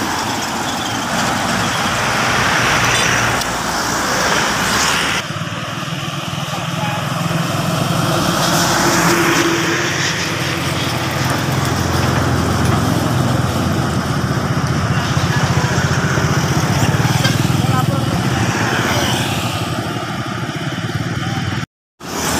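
Heavy trucks rumble past on a road, their engines droning.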